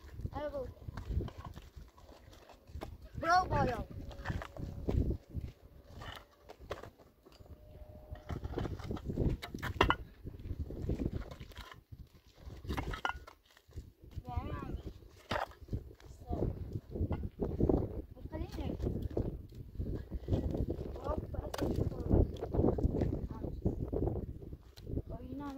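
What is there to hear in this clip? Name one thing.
Concrete blocks scrape and knock together on stony ground.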